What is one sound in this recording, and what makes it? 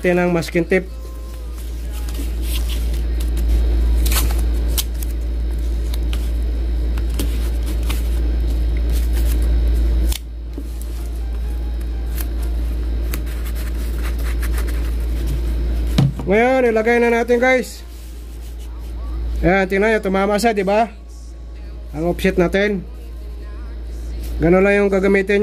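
Cardboard rustles and scrapes as hands fold and press it.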